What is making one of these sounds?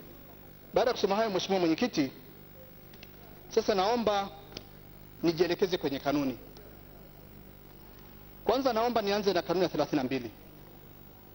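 A woman reads out in short phrases through a microphone, with pauses between them.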